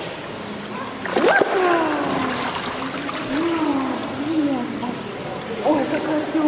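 Water splashes and laps.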